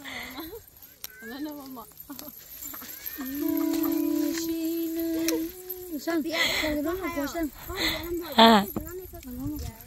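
Young women chatter and laugh nearby.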